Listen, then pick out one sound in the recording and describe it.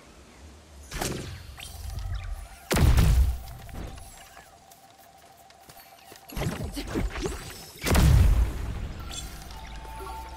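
An arrow whooshes from a bow.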